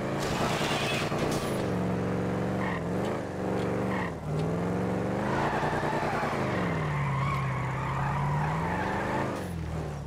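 Car tyres screech on pavement.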